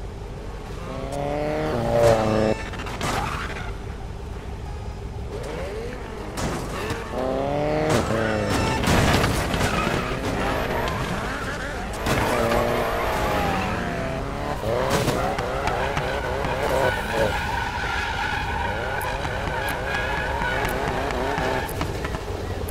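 Powerful car engines rev loudly, rising and falling in bursts.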